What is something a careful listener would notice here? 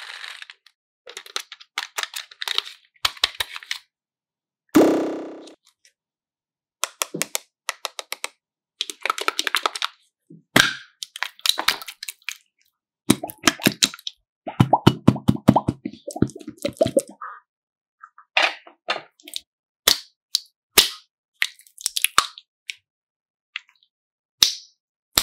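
Sticky slime squishes and crackles between fingers.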